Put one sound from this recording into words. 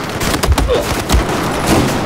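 Automatic gunfire rattles.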